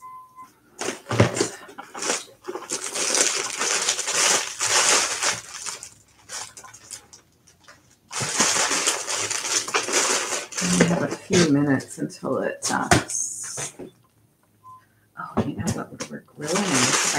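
A plastic bag rustles and crinkles loudly.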